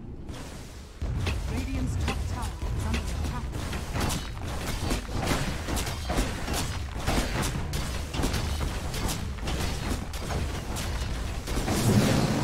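Game spells and attacks crackle and boom in a fight.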